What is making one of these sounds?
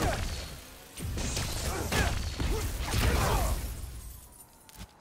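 An energy blast explodes with a loud crackling burst.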